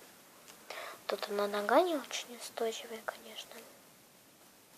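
A young girl speaks close by, in a high, singsong voice.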